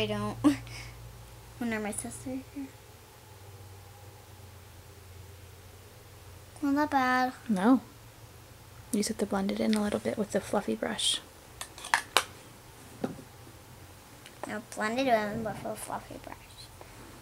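A young girl talks close by, in short bursts.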